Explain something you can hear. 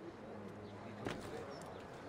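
A body lands on the ground with a heavy thud.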